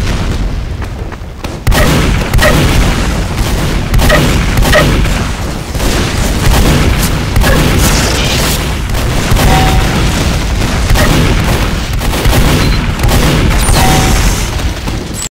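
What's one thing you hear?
A shotgun fires blast after blast.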